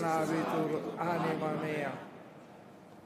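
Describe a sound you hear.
An elderly man chants through a microphone in a large echoing space.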